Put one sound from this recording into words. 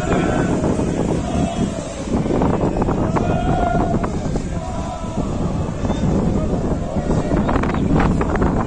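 A crowd of men chants and sings loudly outdoors.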